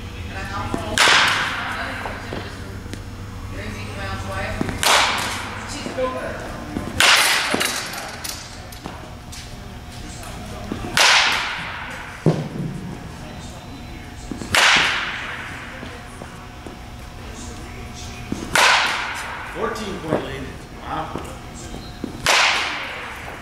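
A baseball bat cracks sharply against a ball, echoing in a large hall.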